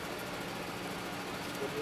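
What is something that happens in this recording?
A fire engine's motor hums steadily nearby.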